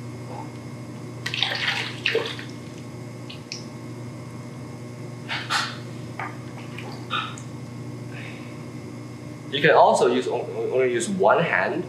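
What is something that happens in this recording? Wet clay squelches under hands.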